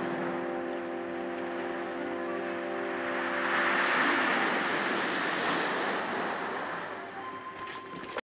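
Waves surge and splash against rocks.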